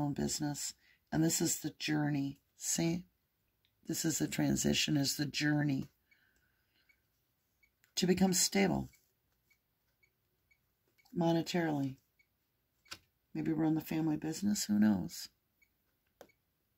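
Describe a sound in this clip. Playing cards rustle and slide softly on a table.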